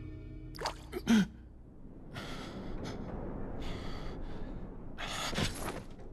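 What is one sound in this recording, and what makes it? A young man speaks in a low, tense voice.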